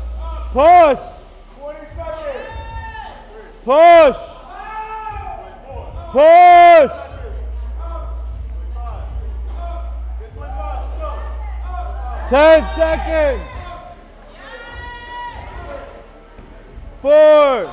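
Men in a crowd shout loud, drawn-out cheers nearby.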